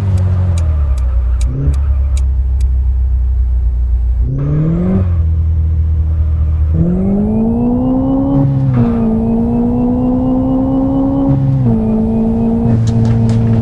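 A car engine idles and then revs up as the car speeds away, shifting gears.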